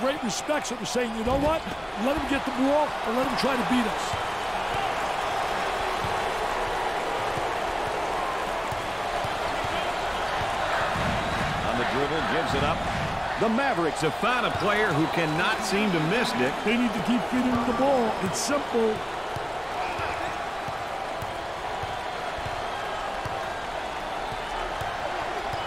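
A large crowd murmurs and cheers steadily in an echoing arena.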